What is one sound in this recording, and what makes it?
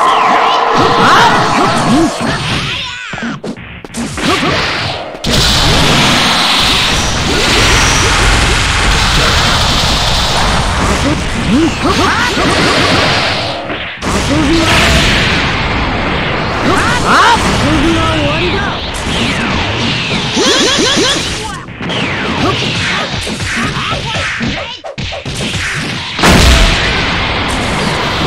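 Rapid punches and kicks thud and crack in a fast fight.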